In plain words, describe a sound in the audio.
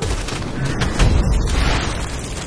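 A magical blast bursts with a rushing whoosh.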